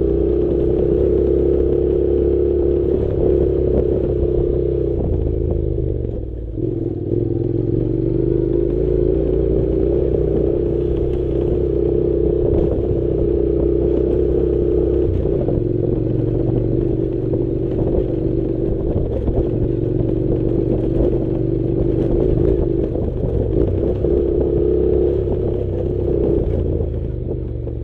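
A motorcycle engine hums steadily, rising and dipping as it rides.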